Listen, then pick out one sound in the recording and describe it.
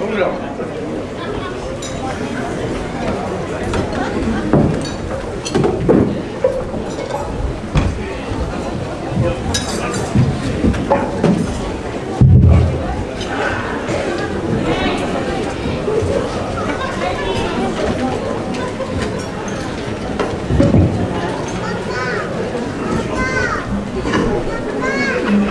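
A group of men sing together loudly.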